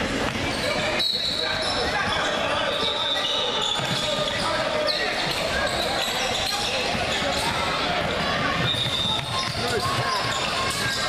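A crowd of players and spectators chatters and calls out, echoing in a large hall.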